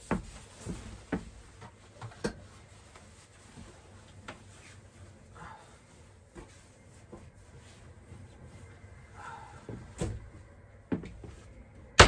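Things knock and clatter as a man rummages in a closet.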